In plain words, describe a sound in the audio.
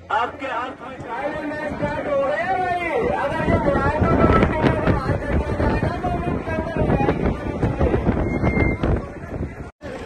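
A large crowd outdoors cheers and shouts.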